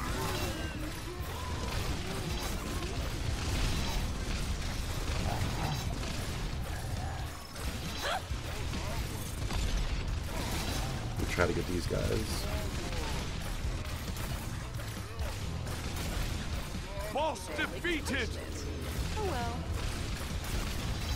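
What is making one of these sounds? Weapons clash and magic blasts crackle in a fast fight.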